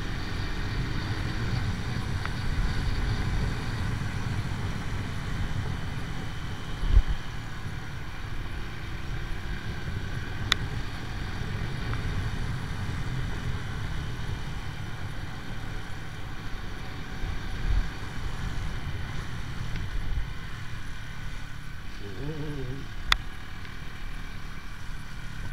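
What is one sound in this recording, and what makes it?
A motorcycle engine hums steadily while riding along.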